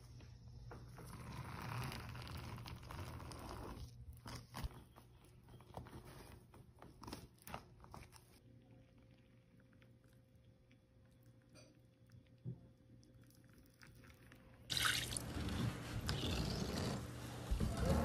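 A metal scraper scrapes and squishes soft soap through a grid.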